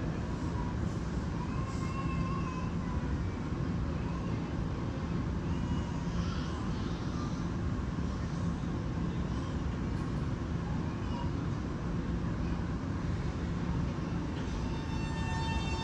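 An electric train hums steadily while standing.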